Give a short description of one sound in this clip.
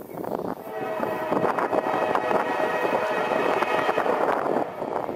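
A train horn blares loudly as a train approaches.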